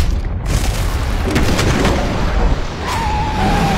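Wind roars, blowing snow.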